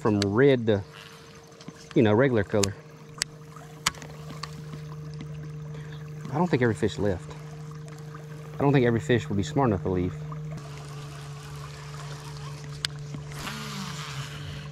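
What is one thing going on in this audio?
A fishing reel clicks softly as its handle is turned.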